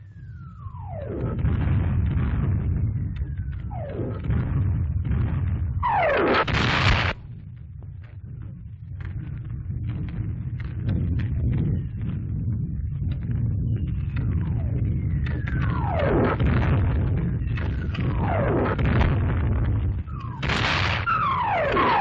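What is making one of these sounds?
Shells explode with deep, rumbling booms.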